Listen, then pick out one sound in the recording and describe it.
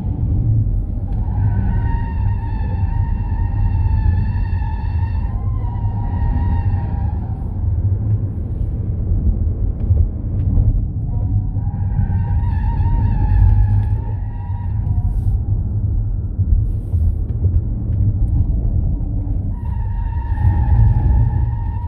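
Tyres squeal through the corners.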